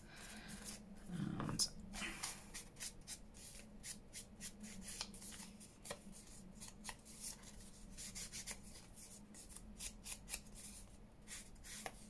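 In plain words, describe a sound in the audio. A foam blending tool dabs and taps rapidly against paper.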